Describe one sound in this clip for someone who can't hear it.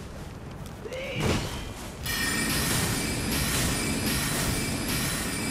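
A spell bursts with a bright shimmering whoosh.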